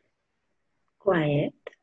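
A young woman speaks briefly over an online call.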